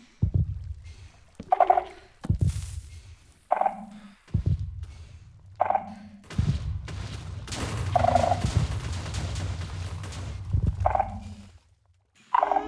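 Explosions boom again and again, with rumbling blasts.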